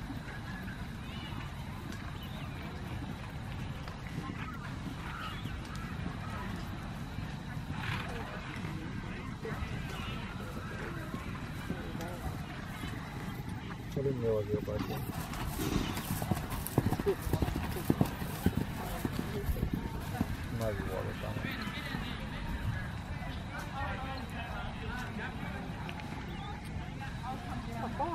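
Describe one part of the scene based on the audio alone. A horse's hooves thud softly on grass at a trot.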